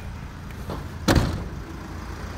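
A van's rear door slams shut.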